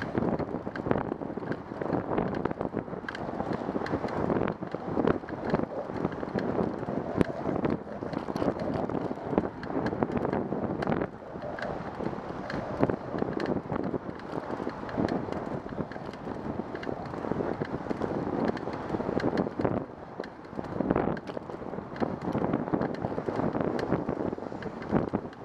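Wind buffets loudly in gusts outdoors.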